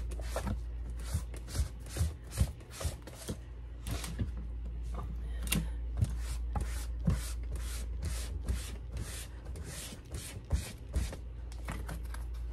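A sponge scrubs rhythmically against fabric.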